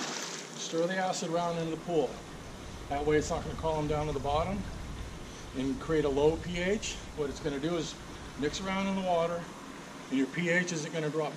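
An older man talks calmly close by outdoors.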